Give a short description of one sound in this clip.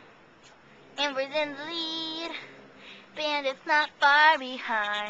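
A young boy talks loudly nearby.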